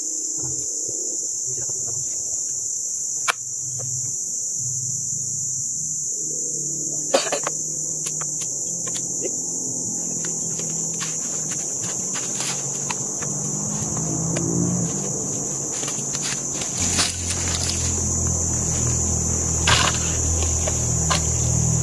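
A hand tool taps and scrapes against a wooden log outdoors.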